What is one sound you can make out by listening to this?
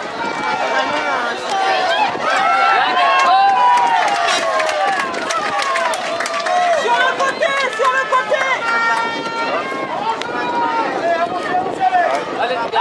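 Young children shout to each other across a football pitch.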